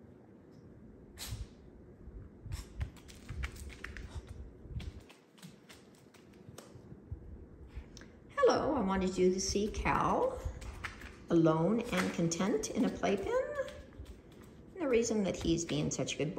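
A puppy's paws patter and crinkle on a plastic sheet.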